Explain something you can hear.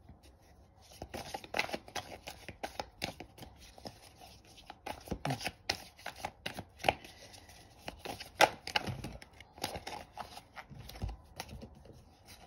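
Cards riffle and slap together as a deck is shuffled by hand.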